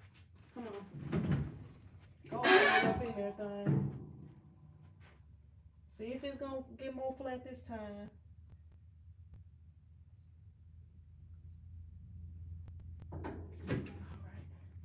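A machine lid thuds shut.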